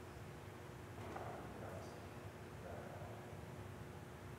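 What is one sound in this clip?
A man speaks quietly, far off, with an echo.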